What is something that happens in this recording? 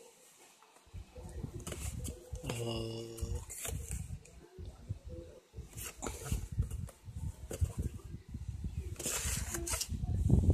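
A cardboard box rustles and knocks as it is handled.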